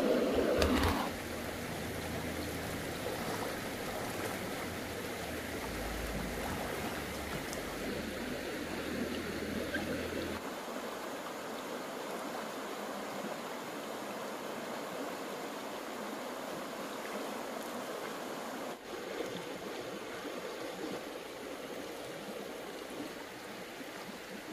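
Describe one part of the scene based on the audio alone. A shallow stream babbles and gurgles over rocks.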